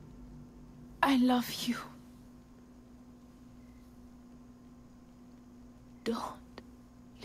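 A young woman speaks softly and weakly, close by.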